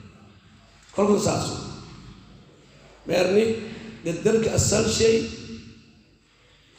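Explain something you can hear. A man speaks calmly and slowly into a close microphone.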